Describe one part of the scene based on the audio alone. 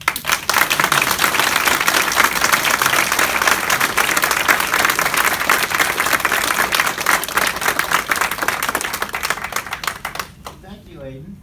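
A crowd applauds loudly and steadily, then the clapping dies away.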